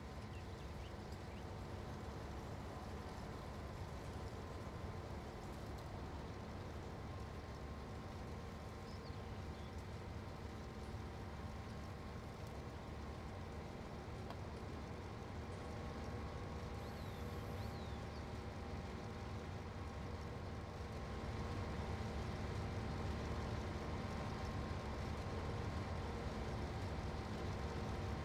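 A combine harvester's engine drones steadily and grows louder.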